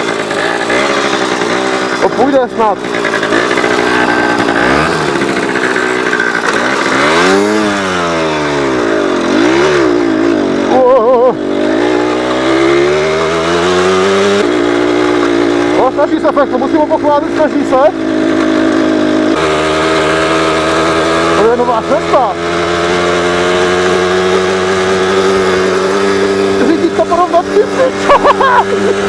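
A small motorbike engine drones close by, revving up and down.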